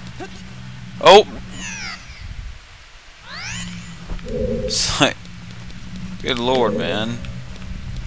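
Sharp video game effects swoosh and chime now and then.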